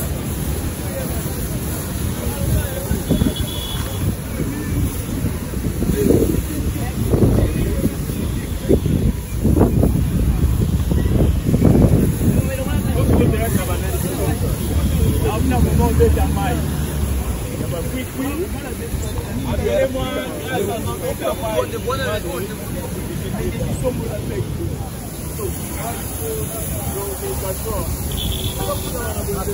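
Water splashes and drips onto wet ground.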